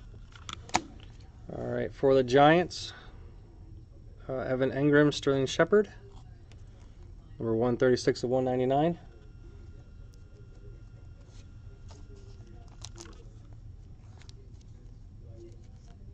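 Trading cards rustle and click softly as hands handle them.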